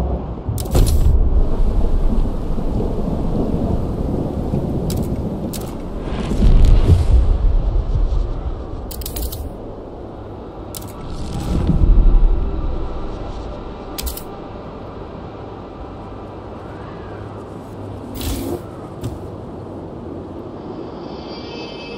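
Wind howls and gusts through a snowstorm.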